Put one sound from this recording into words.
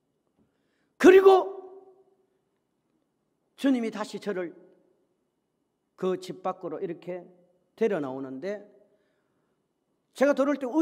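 A middle-aged man preaches forcefully into a microphone in a large echoing hall, speaking in loud bursts with pauses.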